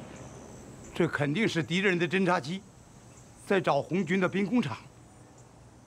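An elderly man speaks gravely.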